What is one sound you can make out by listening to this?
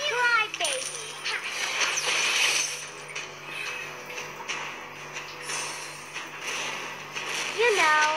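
Magic spell effects whoosh and crackle in bursts.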